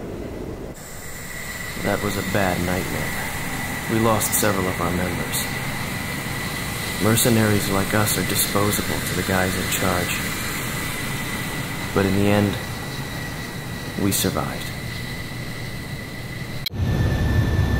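A jet engine hums and whines steadily.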